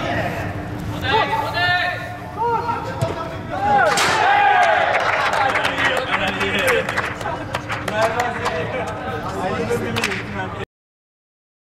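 A ball is kicked with sharp thumps in a large echoing hall.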